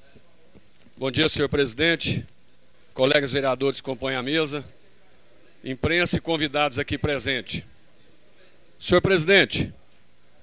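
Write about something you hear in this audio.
A man speaks through a microphone in bursts, with pauses between.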